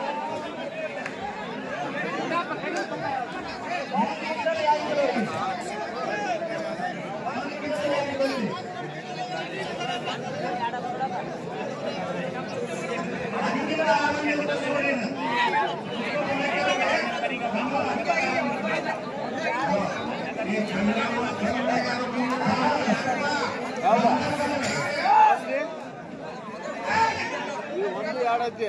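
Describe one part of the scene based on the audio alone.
Men nearby talk and shout with animation.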